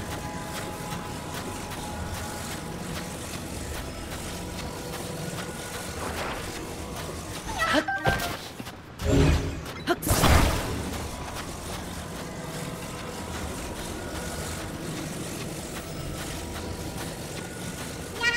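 A wheel rolls and rumbles over sand.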